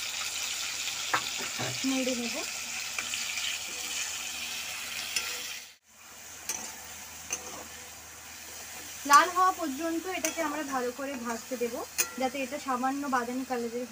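A metal spatula scrapes and clatters against a pan.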